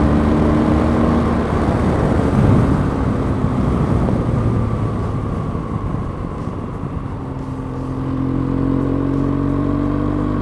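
Wind rushes loudly past a moving rider.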